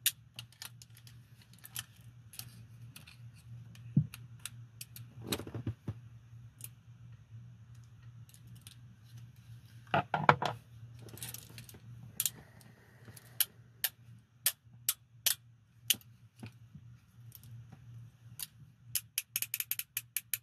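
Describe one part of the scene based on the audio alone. Metal handcuffs clink and rattle in a gloved hand.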